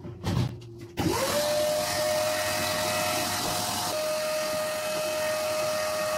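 A vacuum cleaner whirs steadily and hums.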